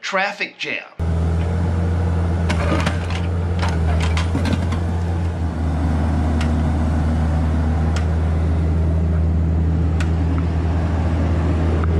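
A small excavator's diesel engine rumbles steadily.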